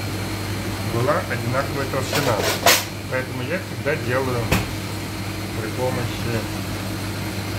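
A middle-aged man talks close by with animation.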